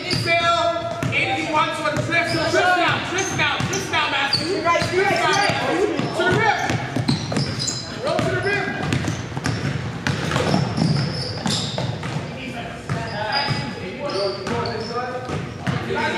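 Basketballs bounce on a wooden floor in a large echoing hall.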